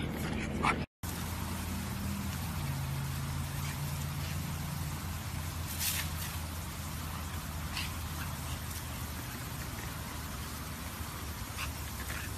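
A lawn sprinkler hisses as it sprays water.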